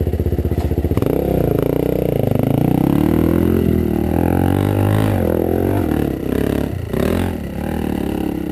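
A dirt bike engine revs and picks up speed.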